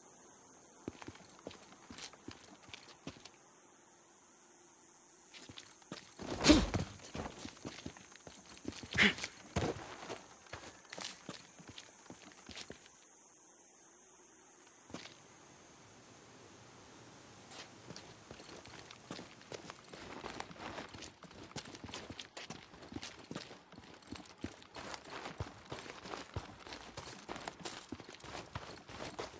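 Footsteps crunch on gravel and pavement.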